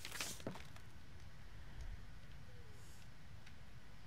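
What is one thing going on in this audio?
A wooden box lid opens with a soft creak.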